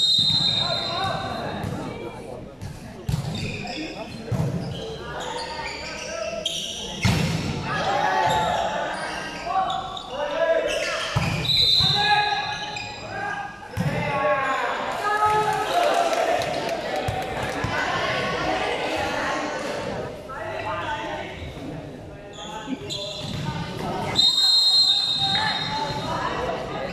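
A crowd of young people chatters and cheers in a large echoing hall.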